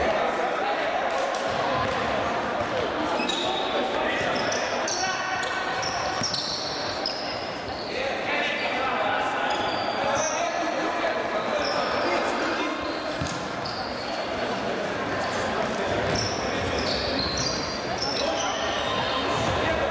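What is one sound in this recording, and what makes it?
Sports shoes squeak sharply on a hard floor in an echoing hall.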